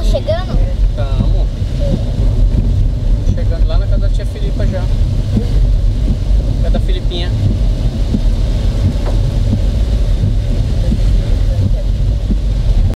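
A car engine hums with a low, steady rumble while driving.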